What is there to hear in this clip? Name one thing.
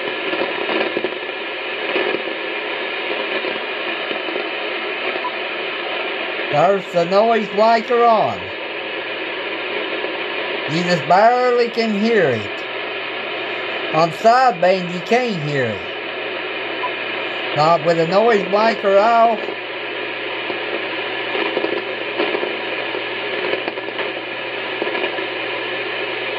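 A radio hisses with steady static.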